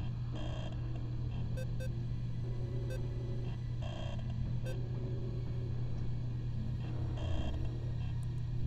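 Short electronic blips sound as a menu selection moves.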